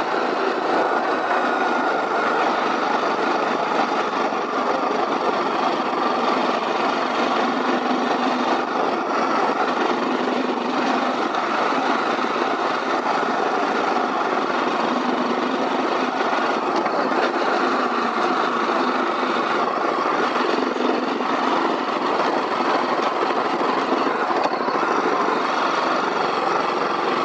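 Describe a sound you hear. A motorcycle engine hums steadily while riding.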